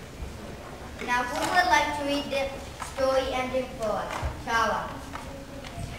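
A young girl reads aloud clearly in a high voice, echoing in a hall.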